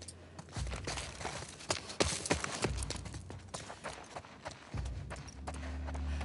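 Footsteps walk over a hard floor.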